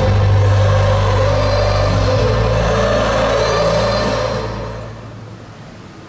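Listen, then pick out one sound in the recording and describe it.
Loud concert music plays and fades out.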